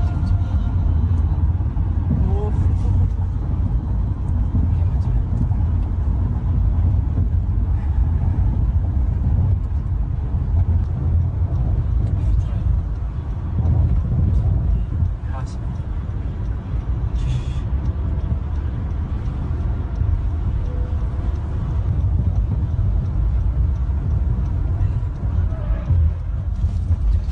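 A car engine hums steadily with road and wind rumble from inside a moving car.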